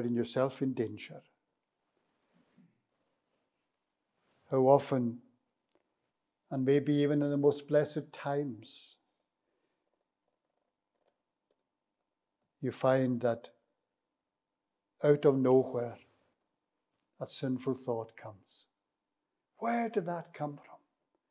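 An elderly man speaks slowly and deliberately into a microphone, in short phrases with long pauses.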